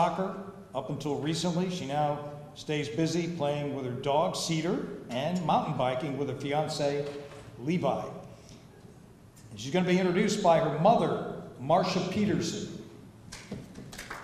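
An older man speaks through a microphone in a large room, pausing now and then.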